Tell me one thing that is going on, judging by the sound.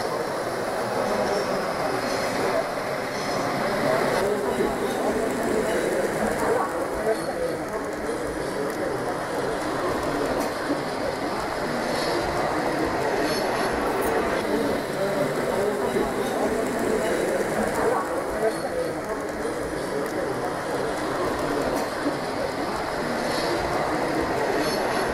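A model train rumbles softly along its tracks.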